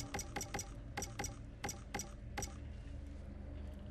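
Interface clicks tick rapidly.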